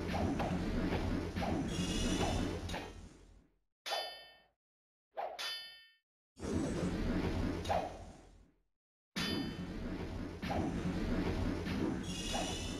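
Video game combat effects clash and crackle.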